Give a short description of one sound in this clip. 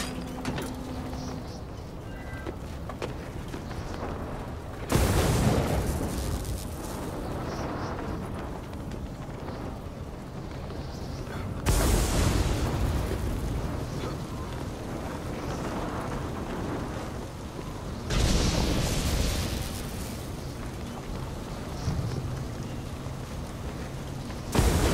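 Strong wind blows steadily and rises in loud gusts.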